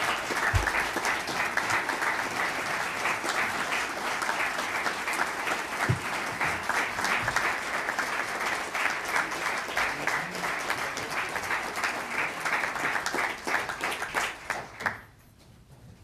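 A large crowd applauds loudly in a big echoing hall, then the clapping stops abruptly.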